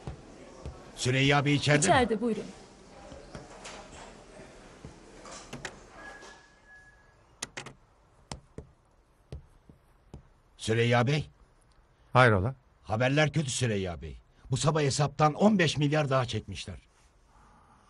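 An elderly man speaks firmly.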